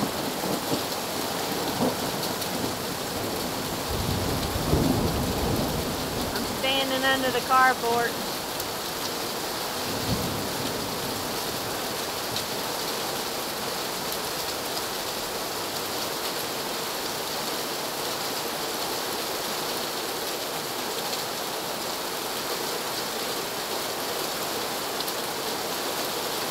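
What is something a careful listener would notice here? Steady rain falls and patters outdoors.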